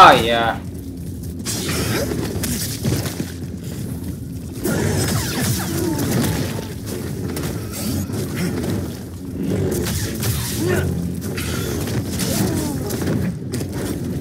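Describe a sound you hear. Energy blades hum and swoosh through the air.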